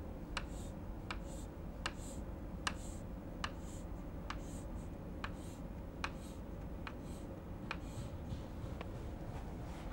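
Chalk taps and scrapes in short, quick strokes on a board.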